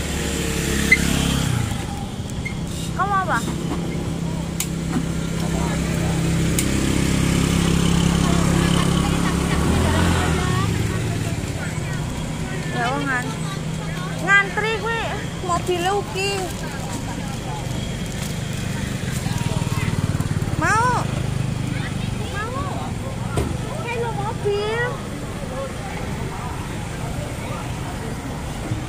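A scooter engine hums steadily while riding along a street.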